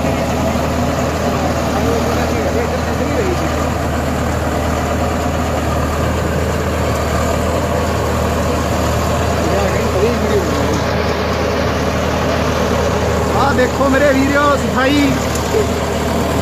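A rotary seed drill churns through soil and straw stubble.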